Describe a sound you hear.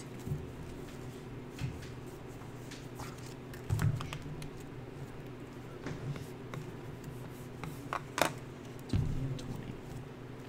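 Playing cards tap and slide onto a table.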